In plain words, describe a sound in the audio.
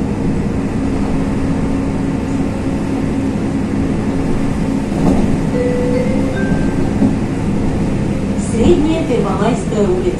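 A vehicle's engine hums steadily from inside.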